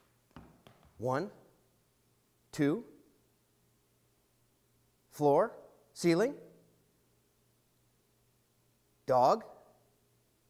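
A man calls out in short, drawn-out bursts nearby.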